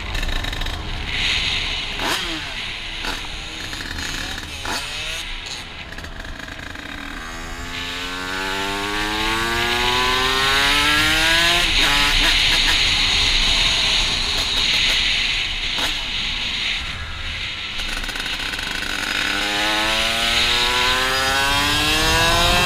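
Wind rushes past a rider's helmet.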